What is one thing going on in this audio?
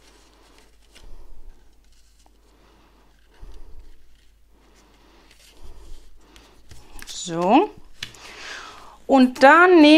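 Paper rustles softly as hands rub over a card.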